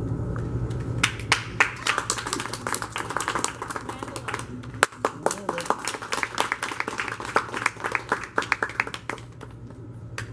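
An audience claps in a large room.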